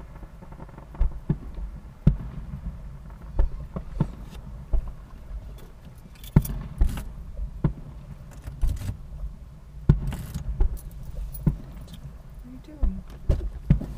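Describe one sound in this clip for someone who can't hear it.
Fireworks boom and crackle in the distance outdoors.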